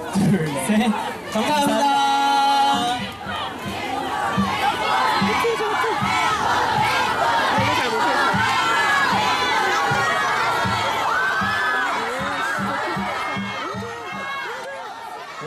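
A crowd of young women chatters and squeals excitedly nearby.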